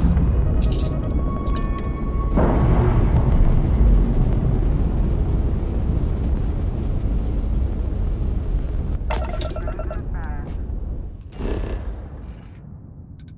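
A spaceship's engines rumble deeply and steadily, then fade away.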